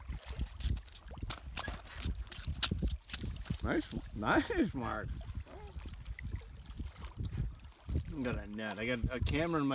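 A fish flops and slaps against rock and grass.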